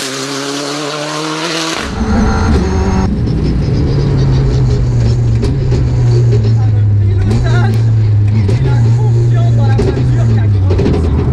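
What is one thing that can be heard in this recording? A rally car engine roars loudly as it speeds along.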